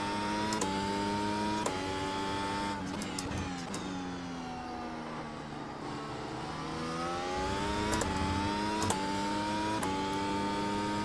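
A racing car engine screams at high revs, dropping in pitch as it shifts down through the gears and climbing again as it shifts up.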